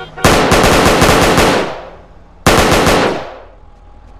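Rapid gunfire bursts loudly, echoing off hard walls.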